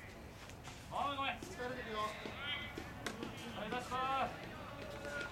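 Young men shout calls to each other across an open outdoor field.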